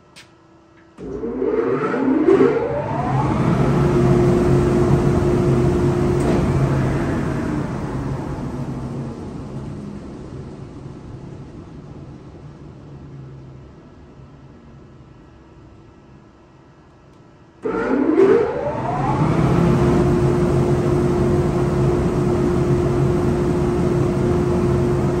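A woodworking machine starts up with a rising whine and runs with a loud roar.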